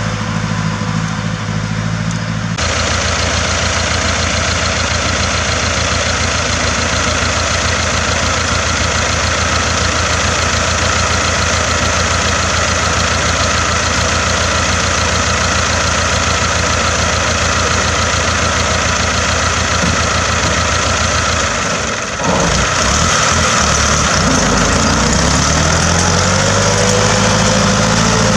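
A tractor engine chugs loudly and steadily close by.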